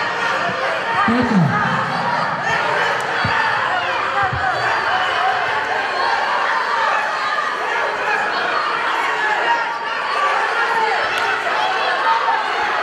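A large crowd of children and adults chatters and shouts throughout.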